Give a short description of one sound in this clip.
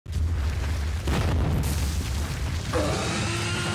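A stone wall cracks and crumbles with a deep rumble.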